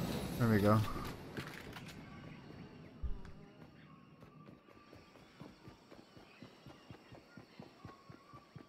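Quick footsteps patter steadily.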